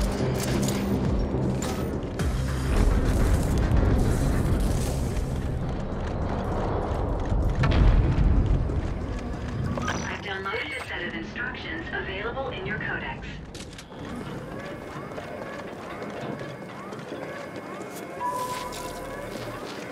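Footsteps tap steadily on a metal floor.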